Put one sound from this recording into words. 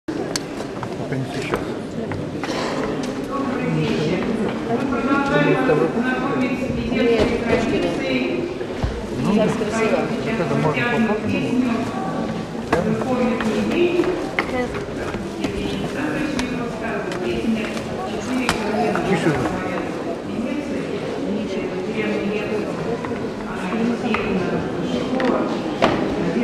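A woman sings into a microphone through loudspeakers in an echoing hall.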